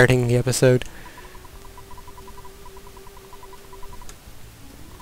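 Rapid, soft electronic blips chatter in a steady stream.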